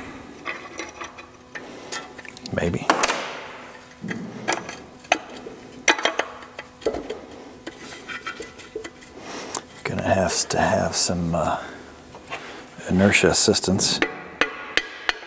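Metal parts clink and knock against each other.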